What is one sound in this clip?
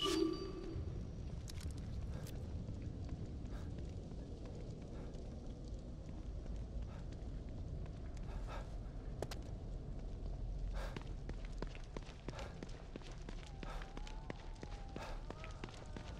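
Footsteps run quickly on wet pavement.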